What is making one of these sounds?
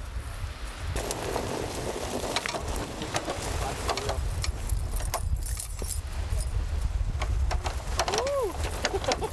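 Knobby tyres crunch and grind over sand.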